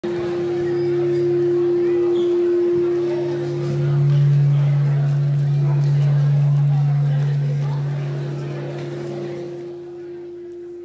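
An audience murmurs in a large hall.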